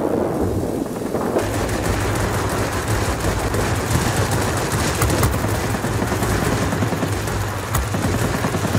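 An aircraft engine roars steadily.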